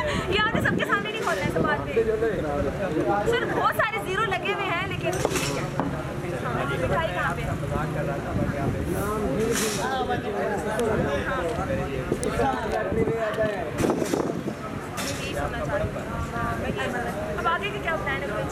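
A man answers cheerfully, close by.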